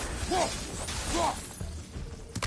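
A magical burst crackles and booms as a weapon strikes.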